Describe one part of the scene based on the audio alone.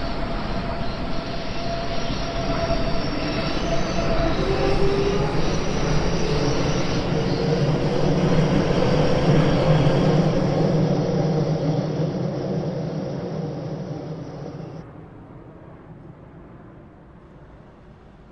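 A passenger train rumbles past up close and fades into the distance.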